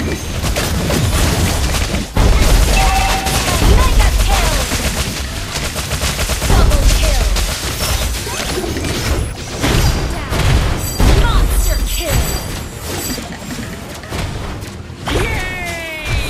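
Game battle sounds of clashing blows and bursts of magic come quickly, one after another.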